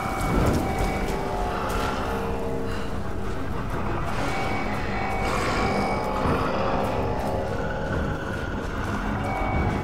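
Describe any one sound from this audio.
A torch flame crackles.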